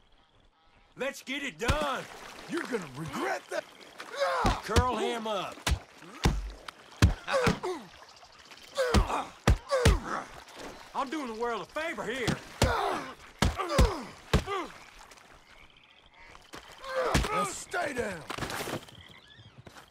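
An elderly man shouts angrily.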